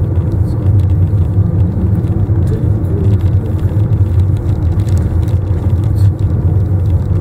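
A car engine hums steadily with a low road rumble from inside the car.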